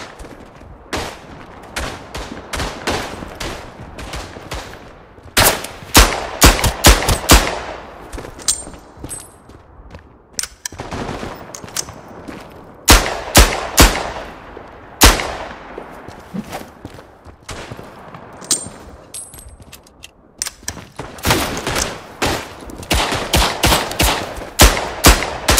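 Pistol shots ring out loudly, echoing in a tunnel.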